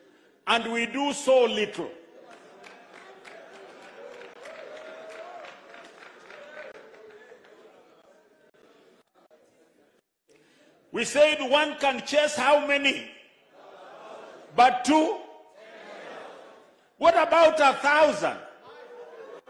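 A man preaches loudly into a microphone in bursts of forceful speech.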